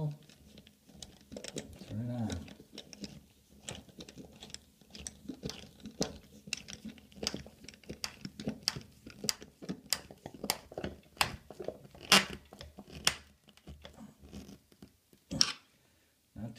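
A metal tool clicks and scrapes against a metal fitting.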